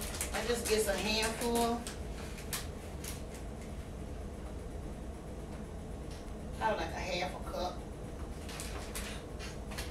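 A plastic wrapper crinkles in a woman's hands.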